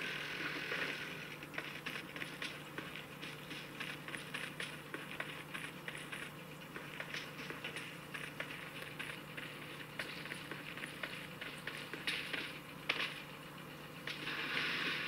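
Rapid bursts of game gunfire crackle from a phone's small speaker.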